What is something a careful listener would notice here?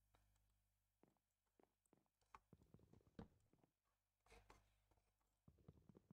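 Wooden blocks are chopped with repeated dull knocks.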